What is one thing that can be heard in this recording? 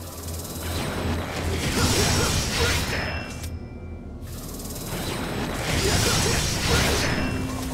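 A sword swishes through the air in quick slashes.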